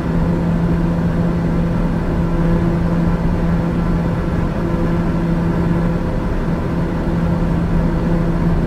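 An aircraft engine drones steadily with a low hum.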